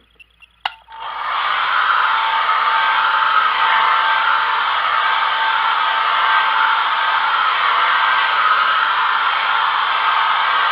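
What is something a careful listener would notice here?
A heat gun blows with a steady loud whoosh.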